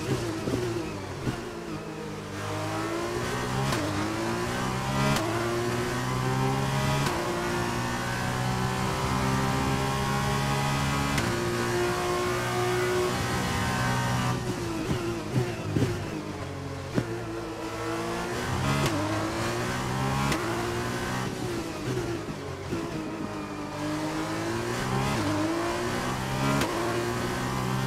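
A racing car engine roars and whines, rising in pitch through each gear and dropping sharply on downshifts.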